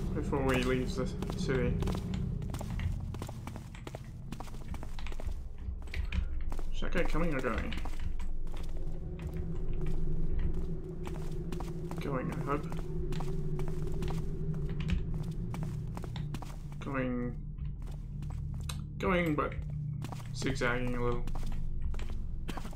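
Footsteps tread steadily on cobblestones.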